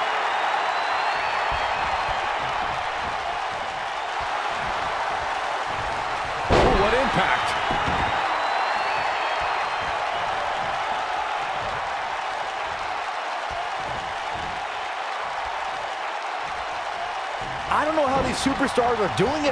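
A large crowd murmurs and cheers in an arena.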